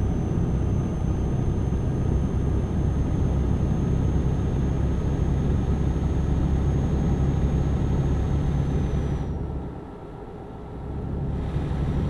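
A truck engine drones steadily while driving, briefly dropping quieter before picking back up.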